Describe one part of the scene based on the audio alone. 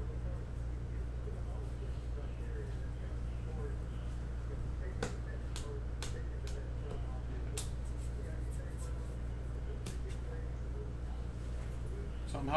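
Trading cards shuffle and snap softly against one another.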